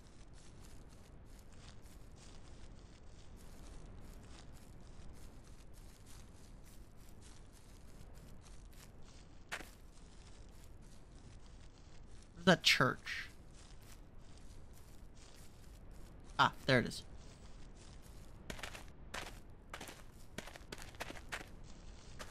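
Footsteps crunch and rustle through dry leaves on the ground.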